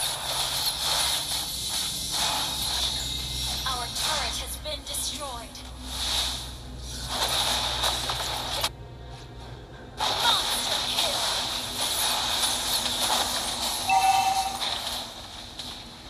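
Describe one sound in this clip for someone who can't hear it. Magical attacks whoosh, zap and crackle in a fast fight.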